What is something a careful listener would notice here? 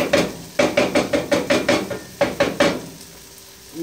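A wooden spoon stirs and scrapes food in a metal pan.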